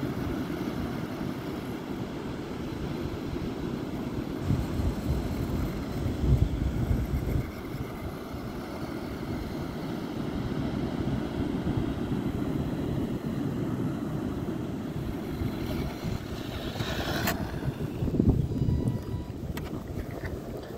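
Wind blusters outdoors across the microphone.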